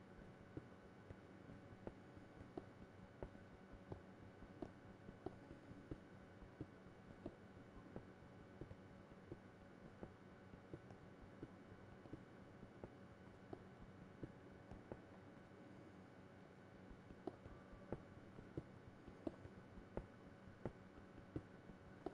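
A pickaxe strikes stone blocks in quick, regular knocks.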